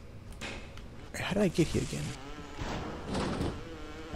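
An electric bolt crackles and zaps.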